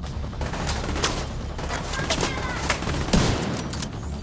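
A gun fires several sharp, loud shots.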